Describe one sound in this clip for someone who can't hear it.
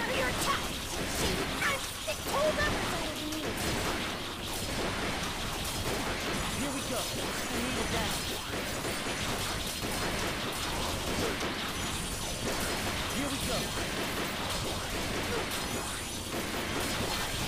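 Laser blasts zap and crackle in quick bursts.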